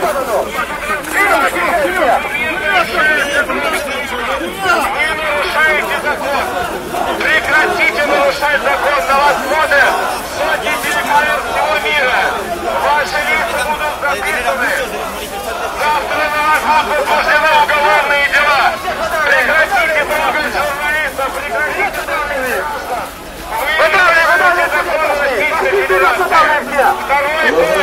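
A large crowd of men and women chant and shout loudly together outdoors.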